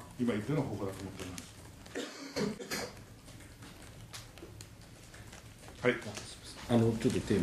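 A middle-aged man speaks calmly into a microphone close by, with pauses.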